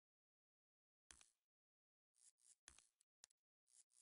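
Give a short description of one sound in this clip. Short soft clicks tick now and then.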